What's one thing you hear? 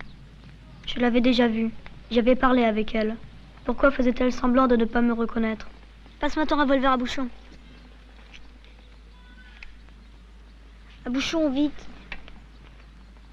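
A boy talks with animation nearby.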